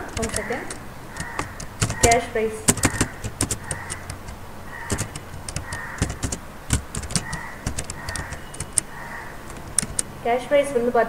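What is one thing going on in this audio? Keys on a keyboard click in quick bursts of typing.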